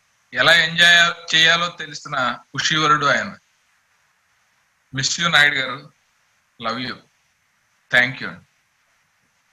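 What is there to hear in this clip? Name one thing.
A middle-aged man speaks with animation over an online call, in short bursts with pauses.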